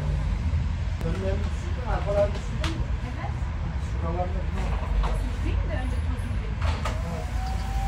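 A vacuum cleaner's plastic parts knock and clatter.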